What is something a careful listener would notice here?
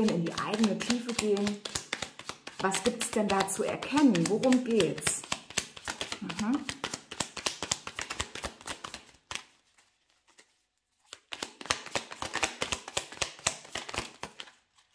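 Playing cards riffle and flick rapidly as they are shuffled by hand.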